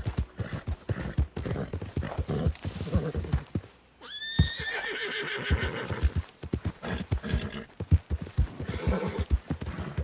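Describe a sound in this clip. A horse gallops on grass and dirt.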